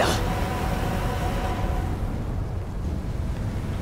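Steam hisses and roars in a deep rumble.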